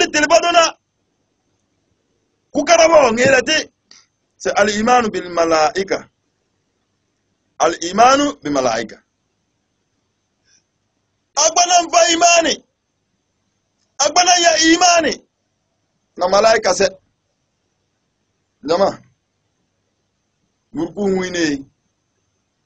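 A man speaks with emphasis into a close microphone, in short bursts with pauses between.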